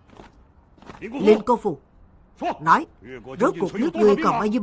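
A man speaks gravely and firmly.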